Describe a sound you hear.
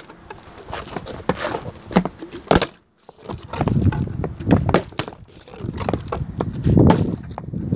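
A plastic water bottle thuds as it lands on a wooden step.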